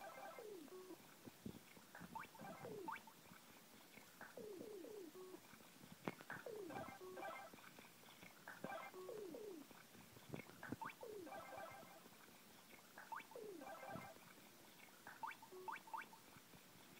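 A tablet game plays bright, bouncy chiming sound effects over and over.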